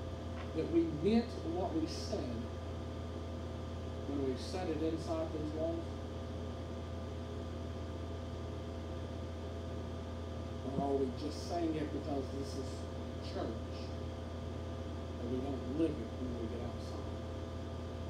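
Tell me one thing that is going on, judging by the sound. A man speaks calmly into a microphone, with pauses, in a room with some echo.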